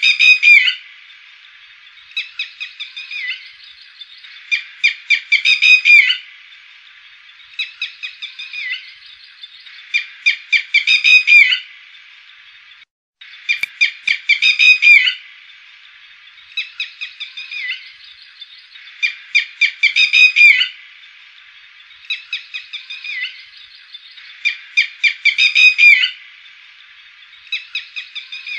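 A lapwing calls in loud, sharp bursts of repeated cries.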